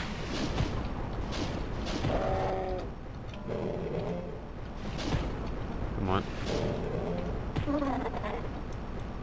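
Heavy punches thud repeatedly against a creature.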